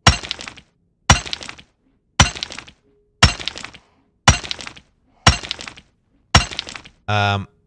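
A pickaxe strikes crystal with sharp, regular knocks.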